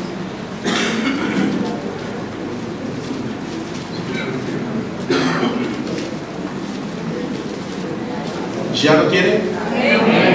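A middle-aged man speaks with emphasis into a microphone, in a slightly echoing room.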